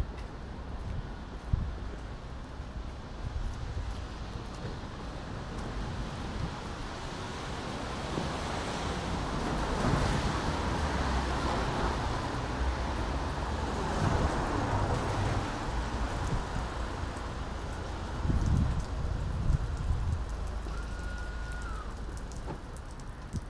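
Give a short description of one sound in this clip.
Rain patters steadily on a wet street outdoors.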